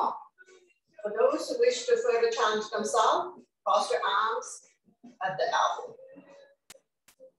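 A woman speaks clearly and calmly into a close microphone.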